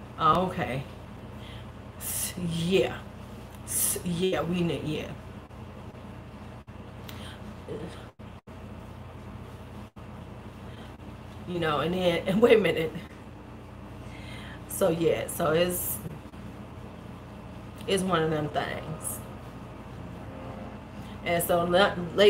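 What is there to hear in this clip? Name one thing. A woman talks with animation, close to a microphone, with pauses.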